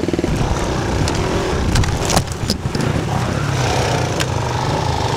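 A dirt bike rattles and bumps over rough ground.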